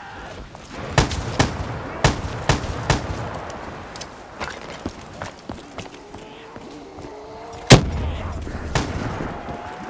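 Gunshots fire in sharp, quick bursts.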